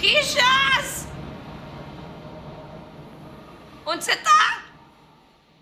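A young woman speaks briefly into a microphone, with a strong echo.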